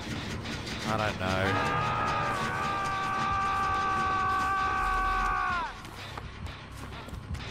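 Footsteps run over grass and undergrowth.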